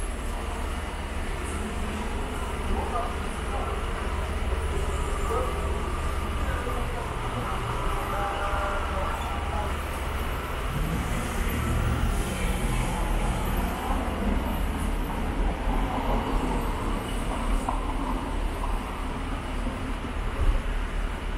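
Light city traffic hums steadily outdoors.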